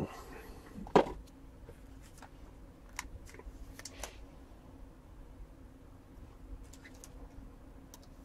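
A hard plastic card case clicks and rattles as a hand handles it.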